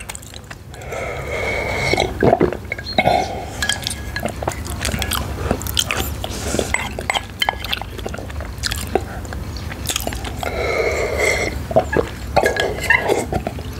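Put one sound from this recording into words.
A man slurps loudly from a cup, close by.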